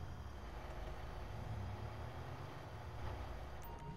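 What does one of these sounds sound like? A garage door rolls open.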